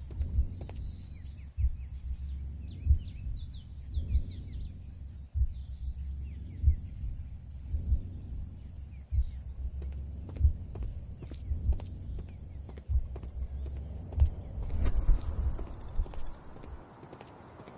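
Footsteps thud slowly on stone paving.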